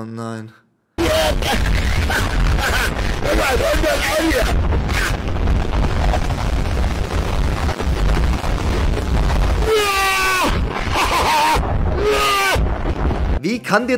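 A man talks and exclaims with animation close by.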